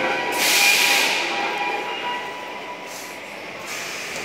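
A subway train's brakes hiss and squeal as the train slows to a stop.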